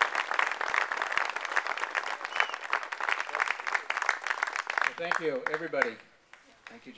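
A small crowd applauds outdoors.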